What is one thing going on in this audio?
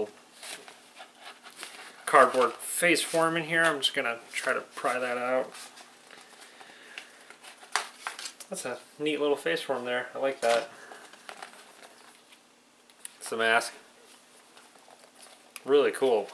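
A plastic mask creaks and clicks as it is handled.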